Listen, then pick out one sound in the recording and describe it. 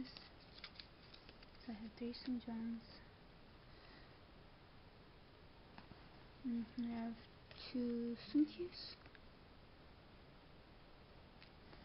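Small cards rustle and tap softly as they are handled and laid on a table.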